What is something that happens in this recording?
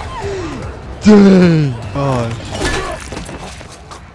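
A young man exclaims loudly in surprise.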